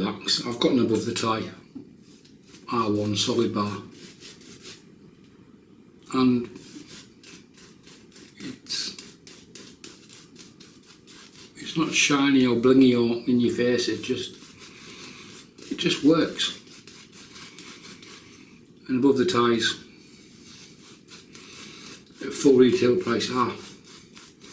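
A middle-aged man speaks calmly and close up, in short bursts.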